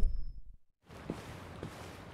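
Footsteps tread softly across a floor.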